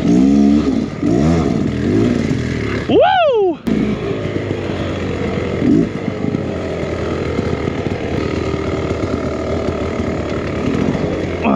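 A dirt bike engine revs and sputters up close.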